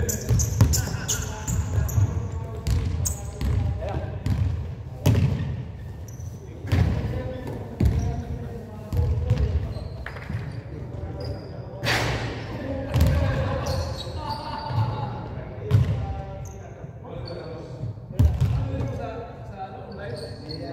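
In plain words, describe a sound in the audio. Basketballs bounce on a hard floor with echoing thuds in a large hall.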